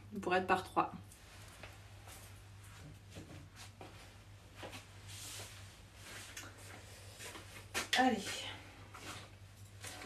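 Small boxes clatter softly on a table.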